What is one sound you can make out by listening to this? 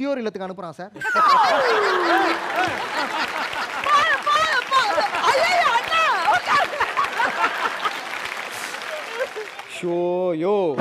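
Several people clap their hands.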